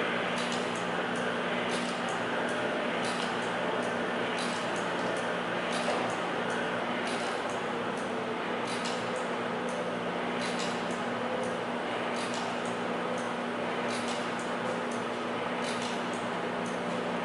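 An electrical coil hums steadily nearby.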